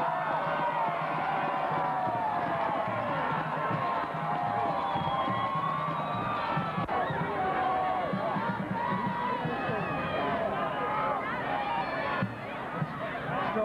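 A large crowd of spectators chatters and shouts outdoors.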